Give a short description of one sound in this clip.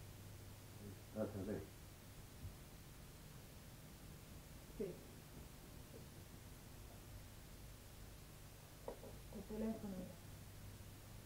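A woman speaks softly and briefly close by.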